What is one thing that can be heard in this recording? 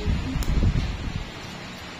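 Nail clippers snip a toenail.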